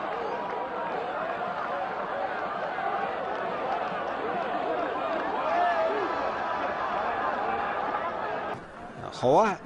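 A crowd of voices murmurs and chatters in an open stadium.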